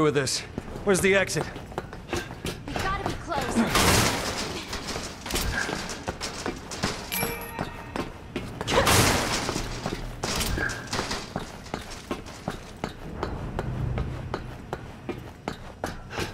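Footsteps clank on a metal grating floor.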